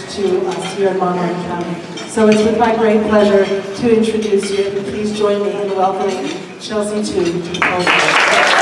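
A woman speaks with animation into a microphone over a loudspeaker.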